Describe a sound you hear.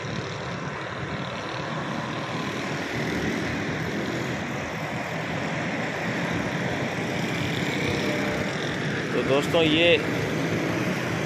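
Traffic rumbles steadily along a nearby road outdoors.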